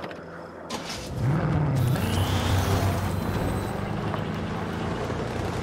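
An off-road buggy engine revs as it pulls away.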